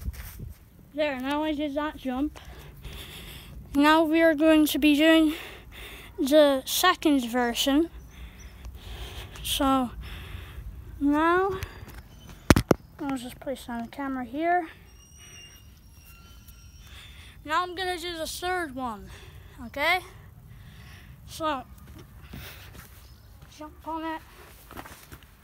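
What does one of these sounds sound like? A boy talks with animation close to the microphone.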